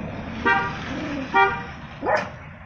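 A small dog barks sharply a couple of times.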